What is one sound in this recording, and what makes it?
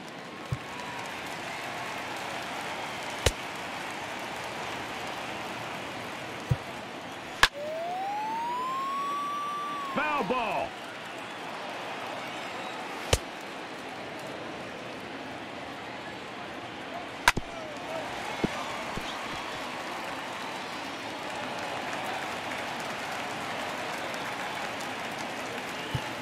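A stadium crowd murmurs steadily throughout.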